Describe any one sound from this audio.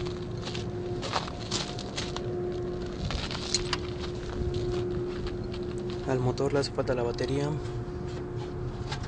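A car engine idles with a steady hum.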